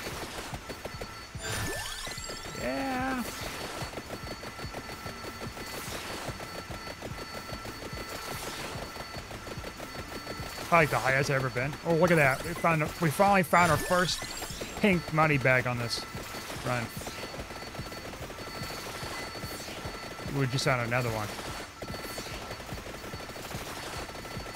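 Rapid electronic hit and zap sounds patter constantly.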